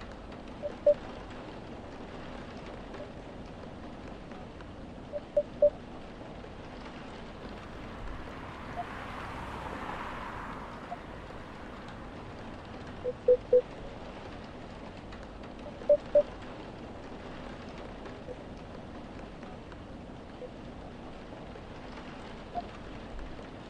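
Short high blips chime in quick pairs and threes.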